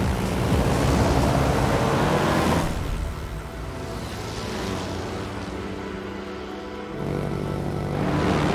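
Propeller plane engines drone steadily.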